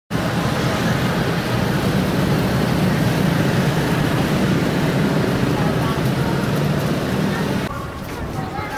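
Motorbike and car engines rumble past in street traffic.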